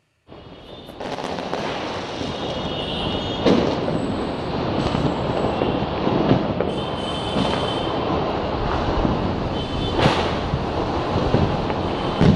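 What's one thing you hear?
Fireworks crackle and fizz.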